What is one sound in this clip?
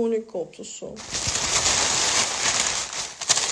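Loud rustling fills the end of the stretch.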